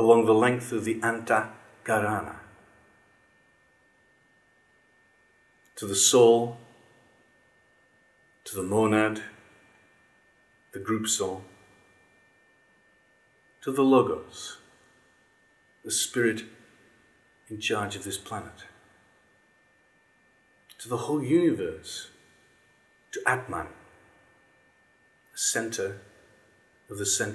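A middle-aged man speaks close by in short, animated bursts with pauses between them.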